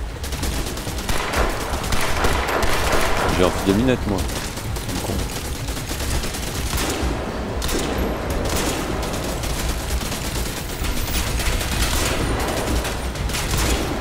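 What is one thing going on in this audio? Gunfire from a game crackles in bursts.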